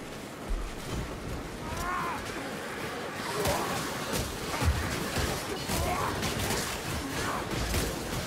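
Blades clash and thud as fighters battle at close quarters.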